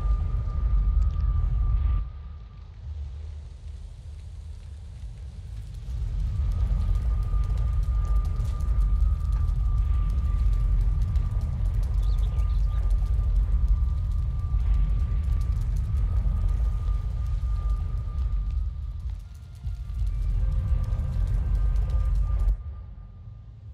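A portal roars with a deep, steady rumble.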